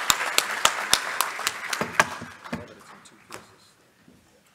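An audience applauds in a large hall and the applause fades.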